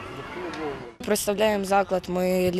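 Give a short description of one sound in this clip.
A boy speaks into a microphone close by.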